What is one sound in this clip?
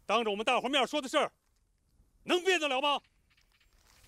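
A middle-aged man speaks sternly and close by.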